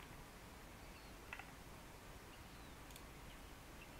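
A game menu clicks softly as an item is moved.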